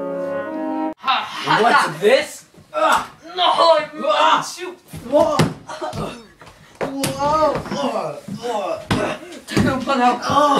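Young boys shout and yell excitedly close by.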